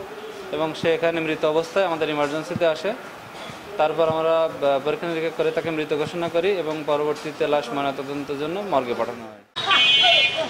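A man speaks calmly and close into microphones.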